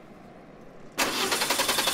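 A car engine runs.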